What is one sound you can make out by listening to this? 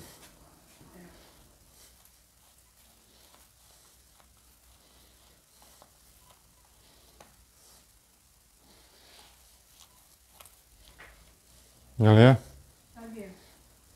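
A man scrapes and taps at a door frame.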